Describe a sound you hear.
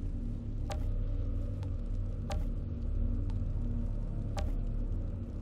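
Short interface clicks sound as menu items are selected.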